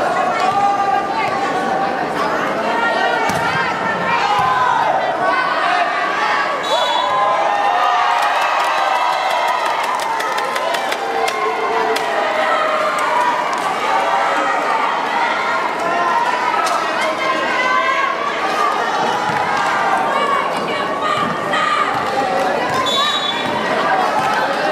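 A large crowd cheers and chatters in a big echoing hall.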